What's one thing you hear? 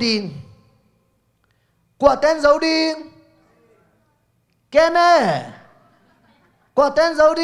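A man speaks with animation through a microphone, with pauses between phrases.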